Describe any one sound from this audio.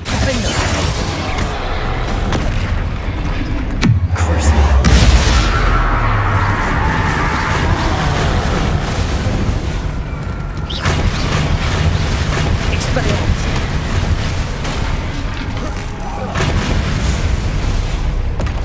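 A large troll roars and thuds heavily.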